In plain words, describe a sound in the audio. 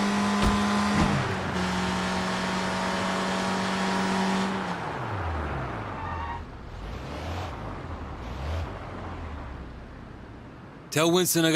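A van engine hums steadily, then slows and fades away.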